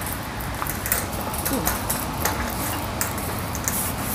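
A shopping cart rattles as it rolls over a hard floor.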